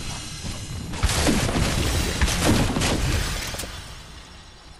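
A pickaxe strikes with loud thuds and crashes.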